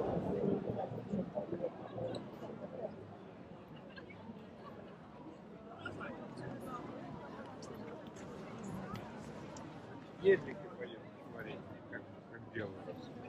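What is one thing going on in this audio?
A crowd of people chatters all around outdoors.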